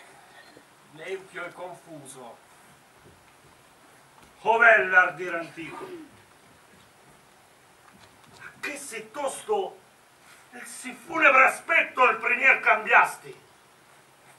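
A man declaims loudly and dramatically through a microphone in an echoing hall.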